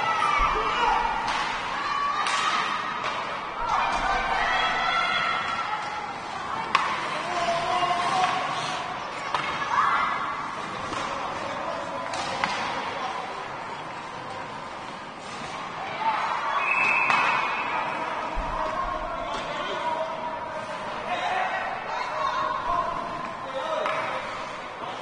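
Children shout and call out across a large echoing rink.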